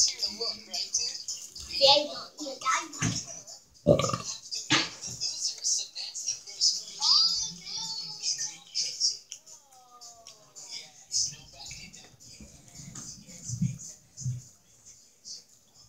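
A woman chews food noisily close by.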